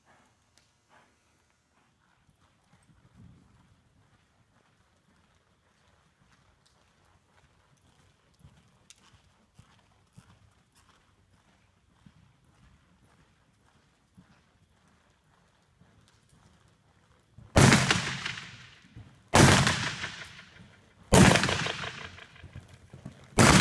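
A horse's hooves thud softly on soft dirt as it lopes around.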